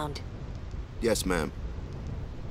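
A man answers meekly.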